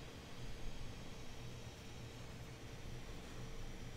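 A sponge dabs softly against paper.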